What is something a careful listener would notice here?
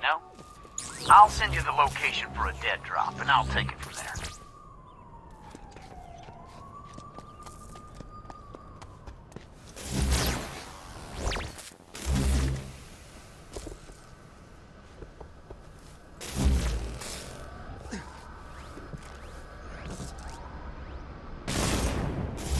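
Electric energy crackles and zaps in sharp bursts.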